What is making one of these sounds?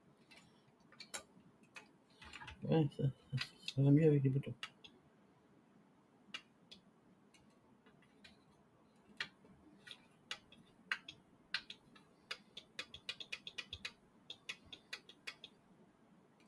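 Small plastic parts click and tap under fingers.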